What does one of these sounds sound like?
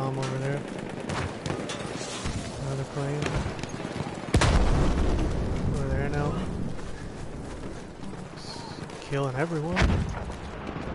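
A man talks into a microphone with animation.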